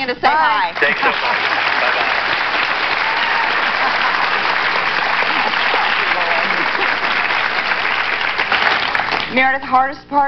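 A studio audience applauds loudly and steadily.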